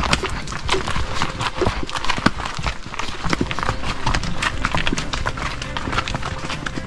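Twigs and leaves crackle under horses' hooves.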